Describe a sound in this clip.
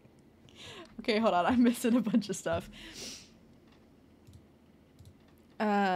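A young woman speaks animatedly and close into a microphone.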